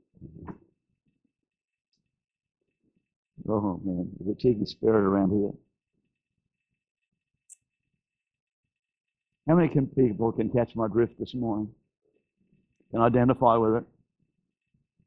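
An elderly man speaks with animation through a microphone in a large room.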